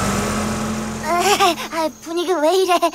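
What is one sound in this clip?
A young boy talks with animation.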